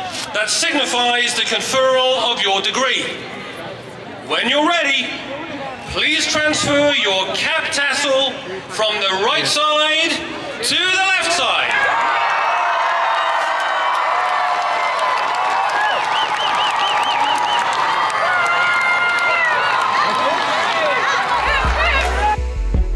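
A large outdoor crowd of young men and women cheers and chatters.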